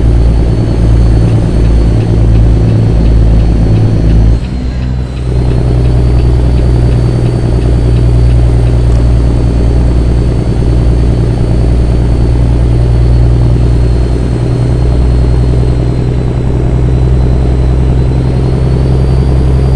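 A heavy truck engine rumbles steadily, briefly dipping as it shifts gear.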